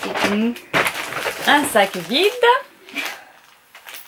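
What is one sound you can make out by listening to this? A young girl speaks and laughs close by.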